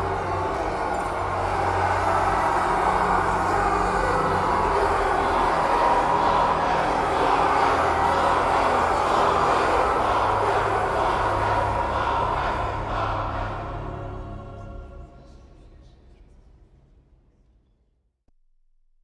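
A large crowd chants and cheers loudly in a big echoing hall, then fades away.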